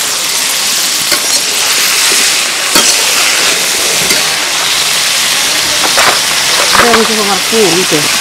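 A metal spatula scrapes and stirs in a pan.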